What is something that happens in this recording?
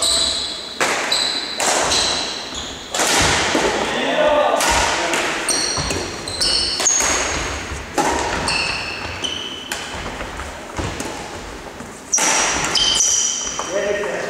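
Badminton rackets strike a shuttlecock in a large echoing hall.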